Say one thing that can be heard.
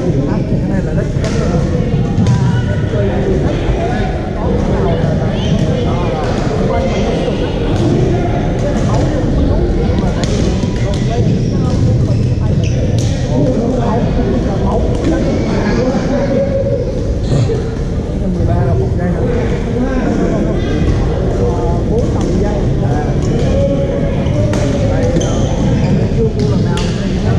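A steady rumble of activity fills a large echoing hall.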